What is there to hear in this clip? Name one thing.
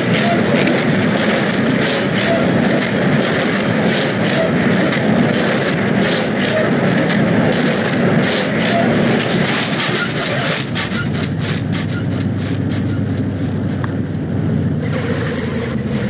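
Crumpled metal creaks and crunches as a truck pushes against a car.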